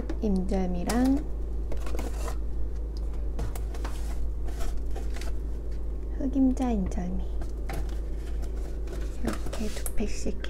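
A cardboard box scrapes and taps against a plastic shelf.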